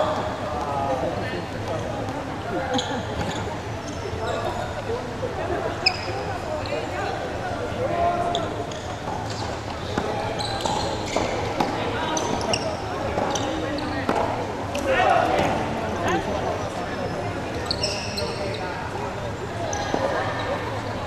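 Men talk and call out across an echoing hall.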